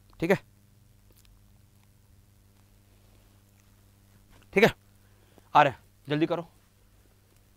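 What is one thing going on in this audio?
A young man speaks in short bursts into a microphone, with pauses between.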